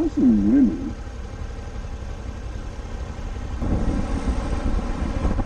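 Wind rumbles against the microphone on a moving motorcycle.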